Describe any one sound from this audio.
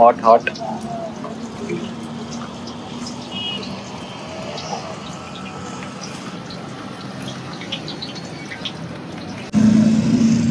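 Hot oil sizzles in a frying pan.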